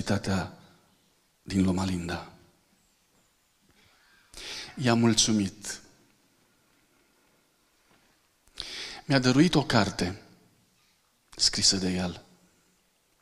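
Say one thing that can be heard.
A middle-aged man speaks calmly through a microphone, in short phrases with pauses.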